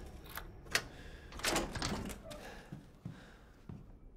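A small metal lock clicks open.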